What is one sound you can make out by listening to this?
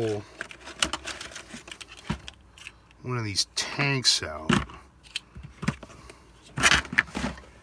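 Plastic toy pieces click and rattle as they are handled.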